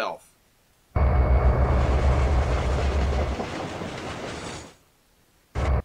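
A train rumbles past.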